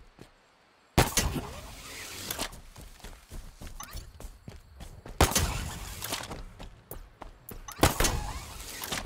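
Heavy thumps land on the ground.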